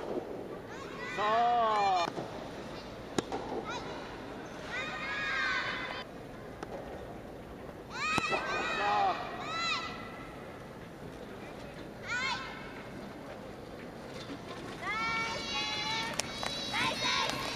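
Teenage girls shout loud calls in a large echoing hall.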